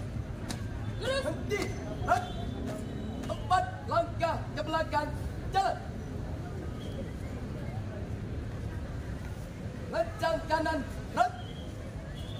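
A group of young people shout together in unison outdoors.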